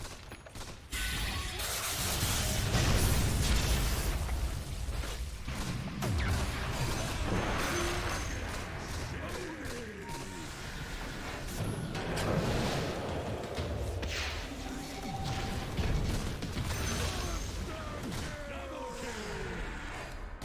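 Magic blasts crackle and boom in a busy fight.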